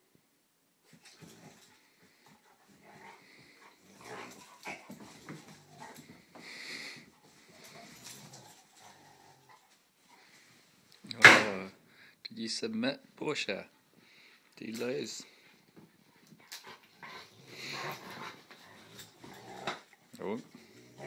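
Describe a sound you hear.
Small dogs growl and snarl as they play-fight close by.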